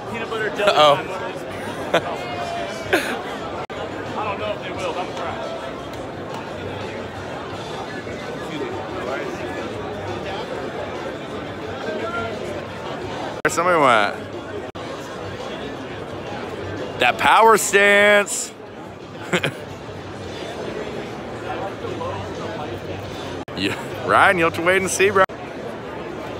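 A young man talks and laughs close to a phone's microphone.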